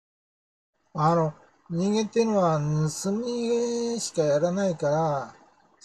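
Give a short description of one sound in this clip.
An elderly man speaks calmly, close to a microphone.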